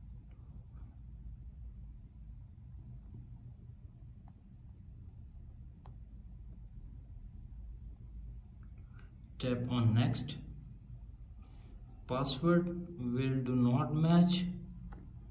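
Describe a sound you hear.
Fingertips tap lightly on a touchscreen.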